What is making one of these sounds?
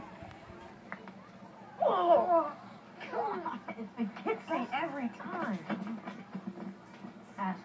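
A television plays through a small, boxy speaker.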